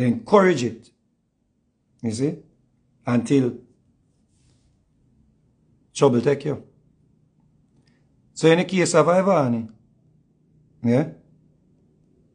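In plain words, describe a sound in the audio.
A man speaks close to a microphone in short, expressive bursts with pauses between them.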